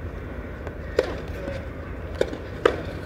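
A tennis ball bounces a few times on a clay court.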